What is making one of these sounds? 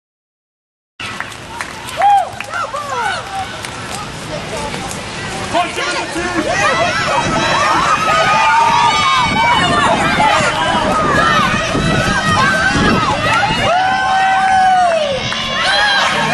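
Young women shout and cheer outdoors nearby.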